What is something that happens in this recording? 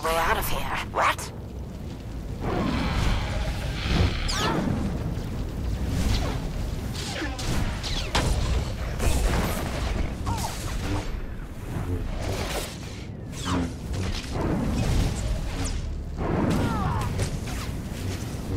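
Lightsabers hum and clash in a fight.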